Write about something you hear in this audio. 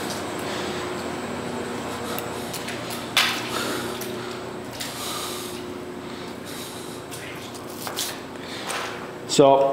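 A drain cleaning machine's motor hums steadily.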